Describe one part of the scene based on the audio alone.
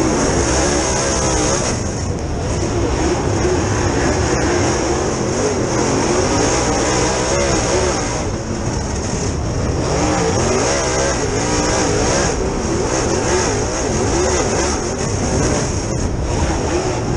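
A race car engine roars loudly from close by, rising and falling in pitch as the driver works the throttle.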